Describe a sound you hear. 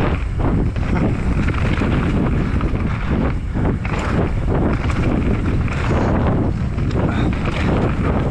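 Wind roars loudly past the rider.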